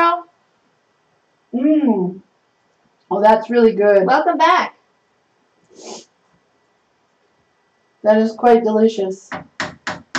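A woman talks casually nearby, in short bursts.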